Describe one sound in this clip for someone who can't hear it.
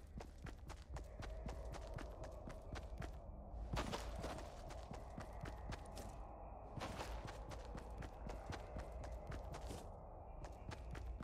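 Quick footsteps patter steadily on grass and ground.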